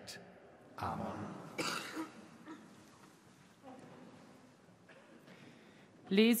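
A man speaks calmly through loudspeakers in a large echoing hall.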